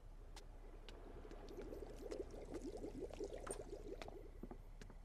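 Water bubbles softly in a fish tank.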